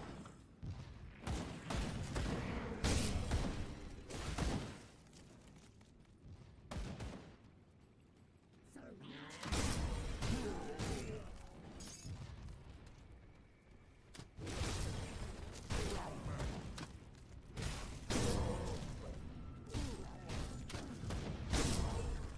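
Weapons strike and monsters are hit in quick, loud impacts.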